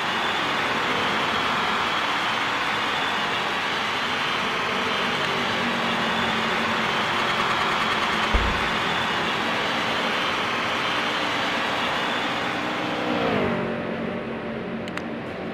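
Race car engines roar loudly as cars speed around a track.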